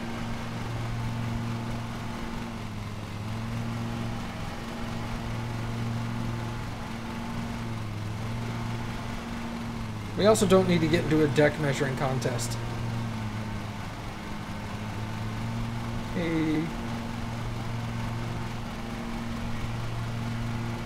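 A lawn mower engine drones steadily.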